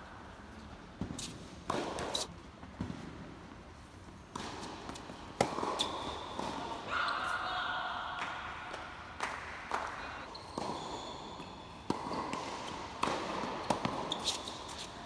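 Tennis balls are struck with rackets, with sharp pops echoing in a large indoor hall.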